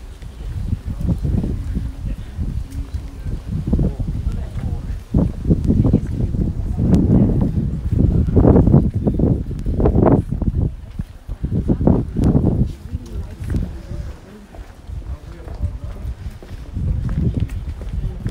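Footsteps scuff on cobblestones outdoors.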